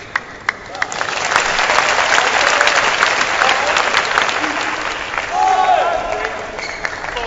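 A crowd applauds and cheers in a large indoor arena.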